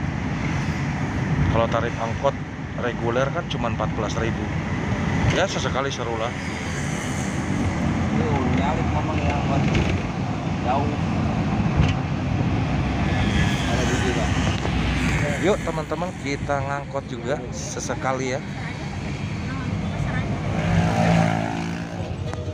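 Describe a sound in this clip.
A van's engine rumbles steadily while driving.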